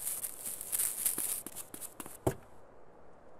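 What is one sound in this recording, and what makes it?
Footsteps run across the ground.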